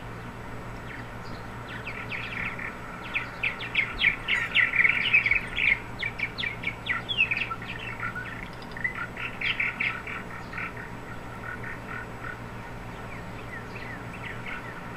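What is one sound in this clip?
Small birds chirp and twitter.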